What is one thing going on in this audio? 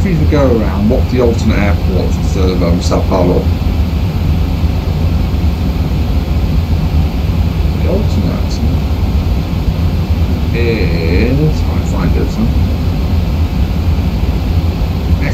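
Aircraft engines drone steadily in the background.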